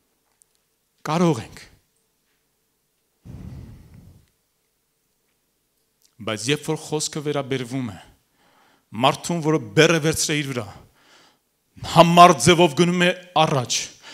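A man speaks with animation into a microphone, in bursts with pauses.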